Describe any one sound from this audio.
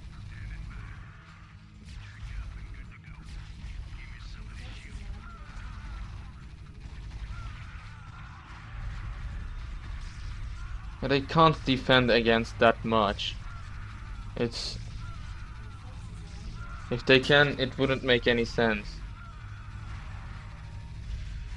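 Game units clash in battle.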